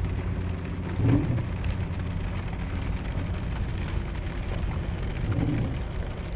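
A windshield wiper thumps across the glass.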